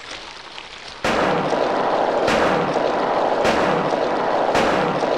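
A pistol fires several loud shots in an echoing room.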